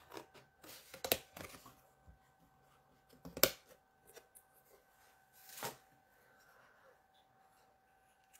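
Paper rustles and taps as hands handle it.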